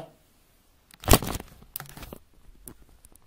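A hand knocks and rubs against a microphone up close.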